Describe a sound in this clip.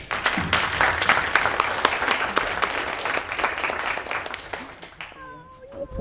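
An audience applauds in a large echoing room.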